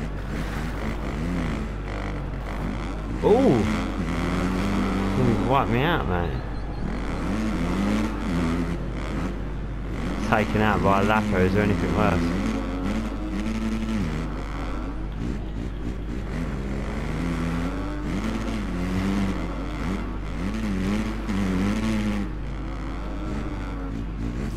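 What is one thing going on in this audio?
A motorcycle engine revs up and down as it races over a dirt track.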